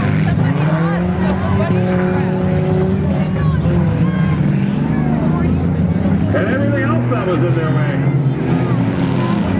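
Race car engines roar and drone steadily around a dirt track.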